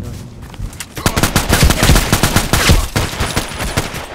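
A rifle fires rapid bursts, loud and close.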